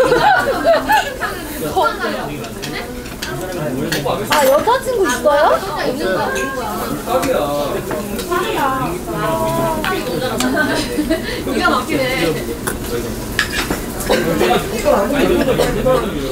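Metal chopsticks clink against dishes.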